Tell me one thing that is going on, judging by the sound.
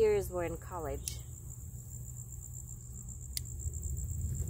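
Pruning shears snip a plant stem.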